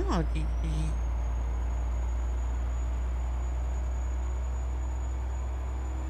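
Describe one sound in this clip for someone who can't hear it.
A truck engine hums with a low, steady drone.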